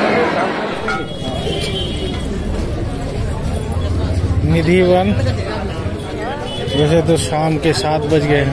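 A crowd of men and women talks and murmurs in a busy street.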